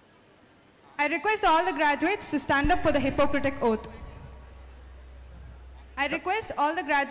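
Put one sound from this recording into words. A woman speaks loudly through a loudspeaker in a large echoing hall.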